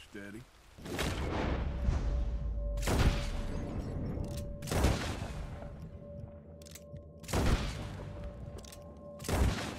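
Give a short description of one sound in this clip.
Gunshots ring out loudly, one after another, and echo.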